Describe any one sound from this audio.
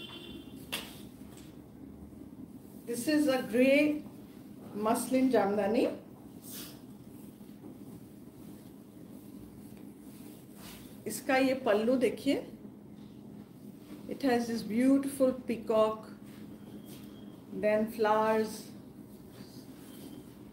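Fabric rustles as it is unfolded.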